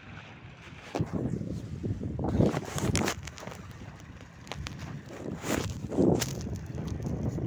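Fingers rub and knock against the microphone.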